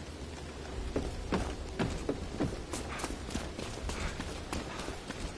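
Footsteps run quickly over wet ground.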